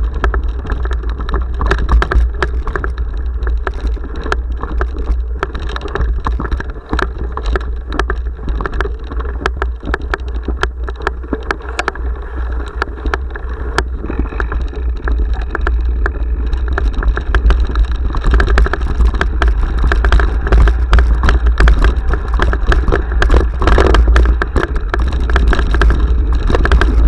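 Wind rumbles loudly against a microphone.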